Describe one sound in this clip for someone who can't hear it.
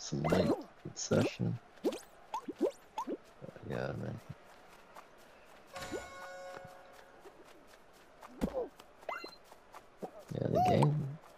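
Playful video game sound effects chime and blip.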